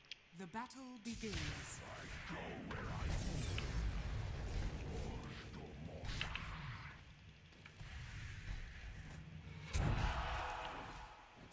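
Magic spells crackle and burst in a video game battle.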